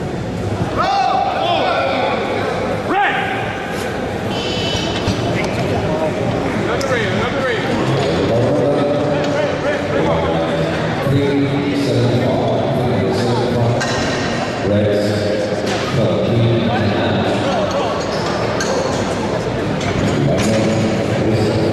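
Men shout encouragement loudly in an echoing hall.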